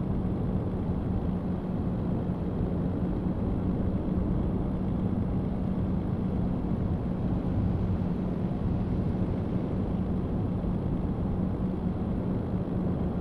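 Tyres roll on the road with a steady rumble.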